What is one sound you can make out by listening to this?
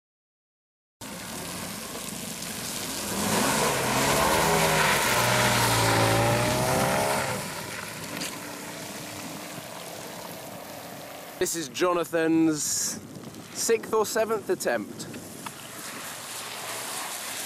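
Car tyres hiss across a wet surface.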